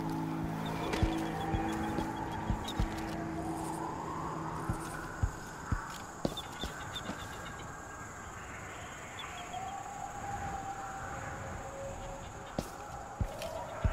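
Footsteps land on stone at an uneven pace.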